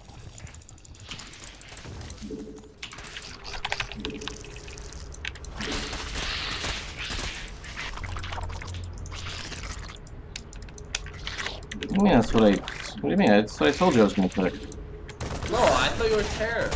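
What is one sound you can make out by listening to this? Electronic game sound effects chirp and click.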